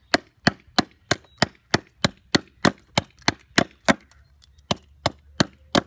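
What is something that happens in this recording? A small hatchet taps rapidly and steadily against a block of wood, chipping it.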